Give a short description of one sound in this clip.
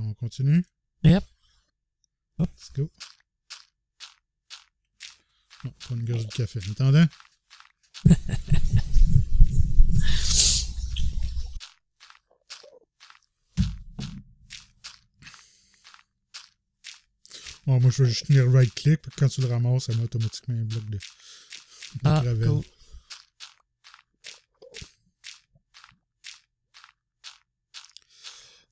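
Stone blocks are broken with rapid, repeated digging taps in a game.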